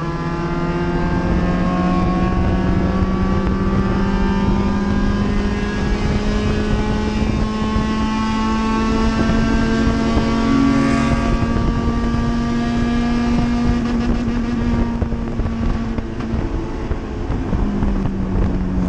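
Wind and road noise rush steadily around the car.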